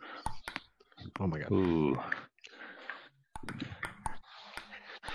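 A ping-pong ball taps sharply on a table.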